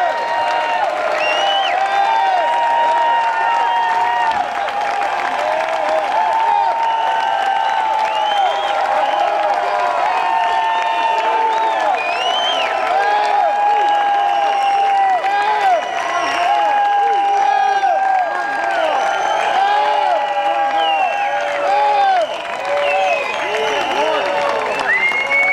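A large crowd cheers loudly outdoors.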